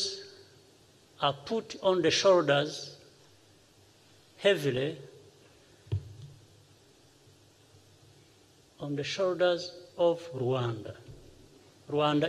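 A man speaks calmly and slowly into a microphone, with long pauses.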